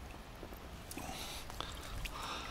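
Water splashes as a hand grabs at the bank.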